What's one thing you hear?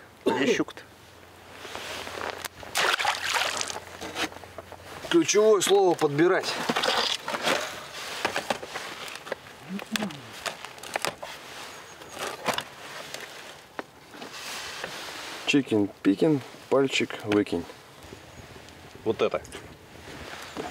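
A man speaks outdoors.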